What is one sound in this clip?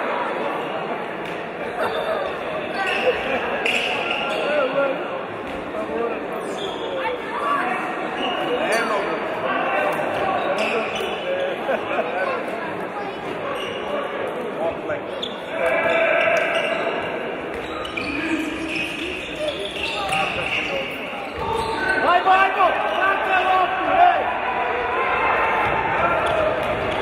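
A crowd of spectators murmurs and shouts in a large echoing hall.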